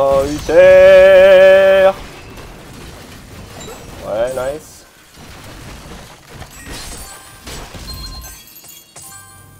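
Magic blasts and weapon hits crackle and thump in a game fight.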